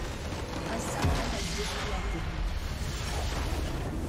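A large crystal structure explodes with a deep, booming blast.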